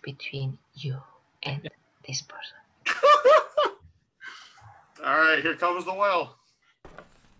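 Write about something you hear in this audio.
Men laugh heartily over an online call.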